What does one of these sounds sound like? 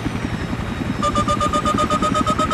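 A missile lock-on tone beeps rapidly.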